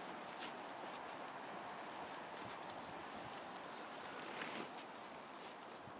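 Dry leaves rustle as a man crawls over the ground.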